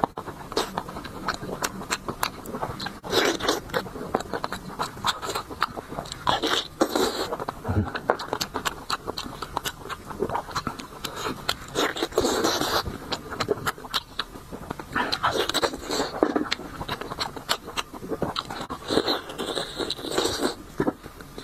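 A man chews and slurps food loudly and close up.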